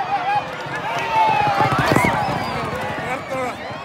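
Horse hooves thunder past on a dirt track.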